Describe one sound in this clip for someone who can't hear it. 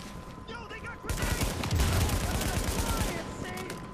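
A grenade explodes with a loud blast.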